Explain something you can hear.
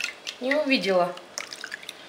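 Liquid pours from a ladle into a plastic container.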